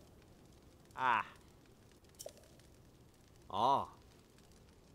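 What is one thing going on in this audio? A man gives a short, voiced exclamation close by.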